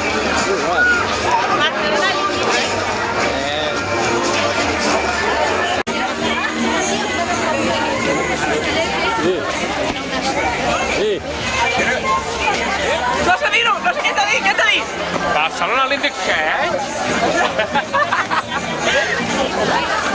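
A crowd of adults chatters and laughs.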